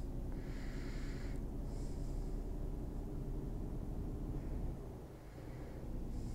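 A truck engine hums steadily while driving on a highway.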